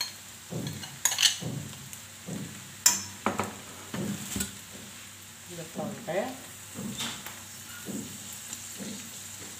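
A metal spoon clinks and scrapes against a pan.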